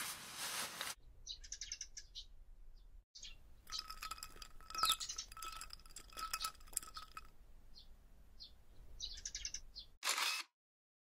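Paper crinkles and rustles as it is peeled away.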